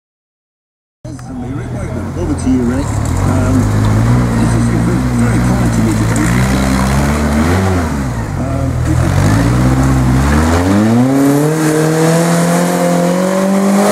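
A small car engine revs hard, rising and falling in pitch, close by.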